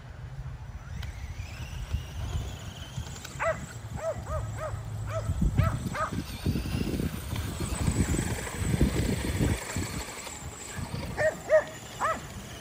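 A toy car's electric motor whines as it drives about.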